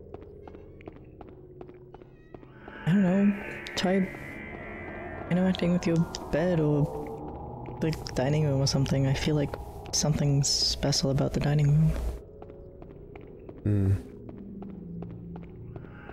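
Footsteps run quickly across a hard stone floor.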